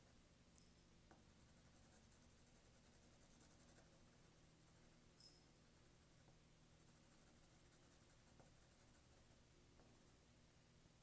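A pencil scratches softly across paper.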